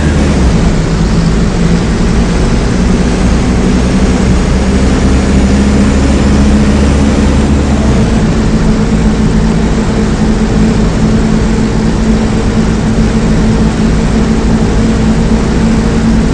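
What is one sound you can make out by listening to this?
A bus engine hums steadily with a low drone.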